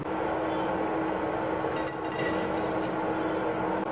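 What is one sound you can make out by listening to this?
Dry spaghetti rattles into a pan of water.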